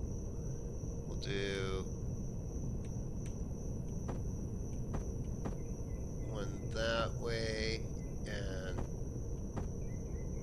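Spaceship thrusters rumble steadily.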